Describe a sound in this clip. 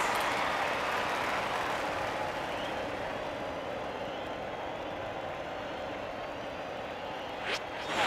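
A crowd murmurs and cheers in a large stadium.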